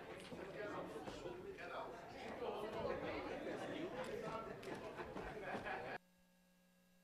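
Several men and women talk at once in a large hall.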